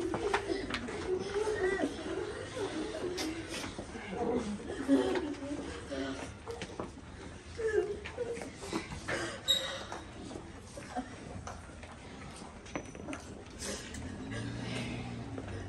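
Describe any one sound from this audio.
A crowd of men and women murmur and talk nearby.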